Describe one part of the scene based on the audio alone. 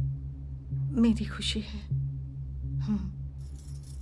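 An older woman speaks softly and gently.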